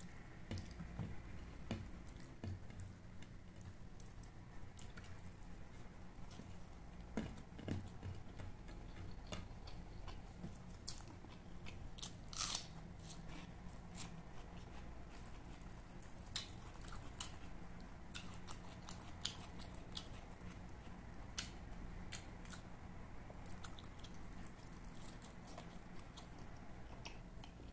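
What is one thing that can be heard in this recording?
A man chews and smacks his lips loudly and close up.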